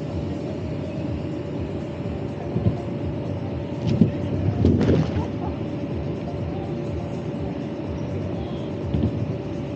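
An air blower hums steadily.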